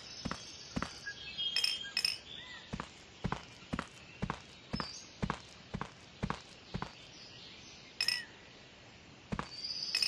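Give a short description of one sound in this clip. Footsteps tap steadily on pavement at a walking pace.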